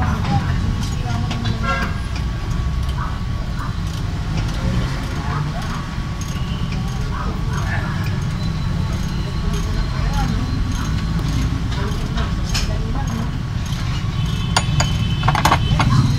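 Metal tools clink and tap against car brake parts.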